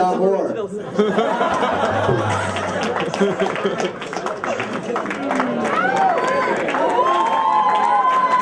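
A crowd of young men and women chatters and laughs loudly.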